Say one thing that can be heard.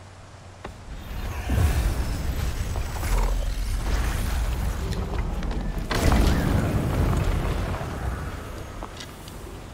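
A heavy gate rumbles open with a deep roar.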